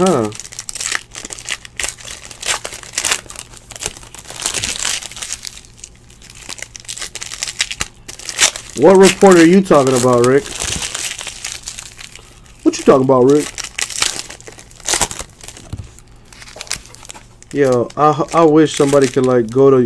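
Foil card wrappers crinkle and tear in close hands.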